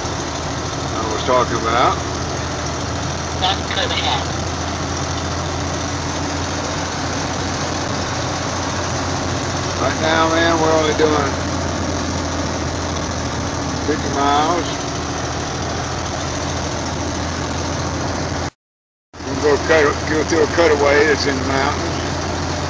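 A truck engine hums steadily while driving on a highway.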